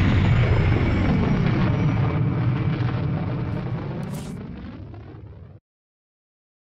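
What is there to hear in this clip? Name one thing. A deep engine rumble hums loudly and fades away.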